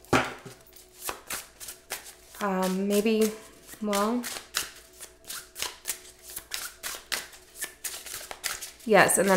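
Playing cards riffle and slap as they are shuffled.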